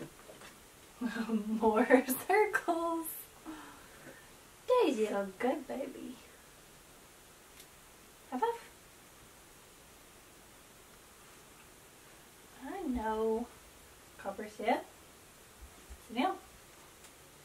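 A young woman talks warmly and with animation, close by.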